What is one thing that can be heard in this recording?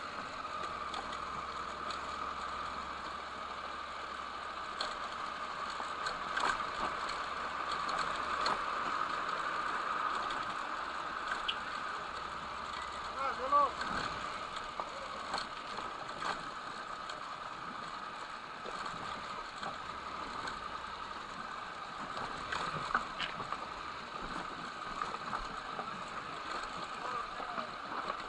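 Motorcycle tyres crunch over loose gravel.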